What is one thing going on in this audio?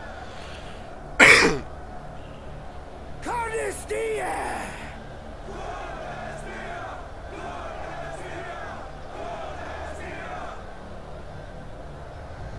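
A man shouts forcefully to a crowd.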